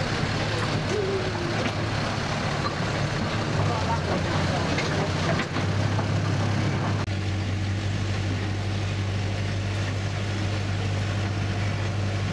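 Train wheels rattle and clack along the rails.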